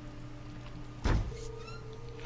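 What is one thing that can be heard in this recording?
A door bangs open with a sharp thump.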